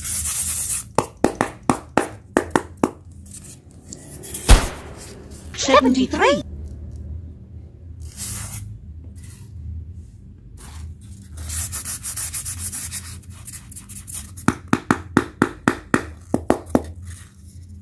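Fingers tap on a block of foam.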